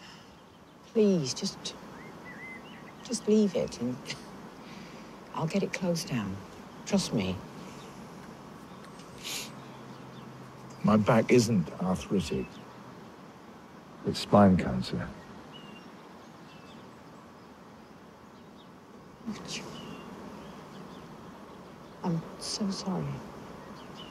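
A woman speaks quietly and calmly, close by.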